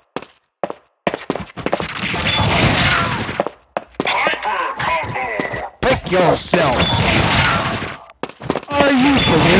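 Cartoonish game sound effects and music play loudly.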